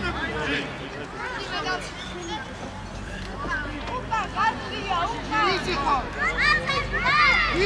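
A man shouts from a distance outdoors.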